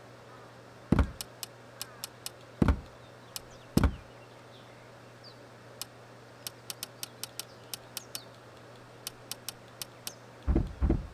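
Short menu clicks tick one after another.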